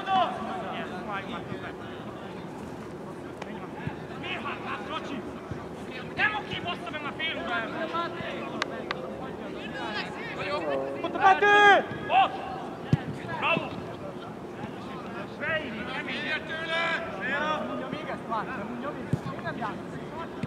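Young men shout to each other across an open pitch outdoors.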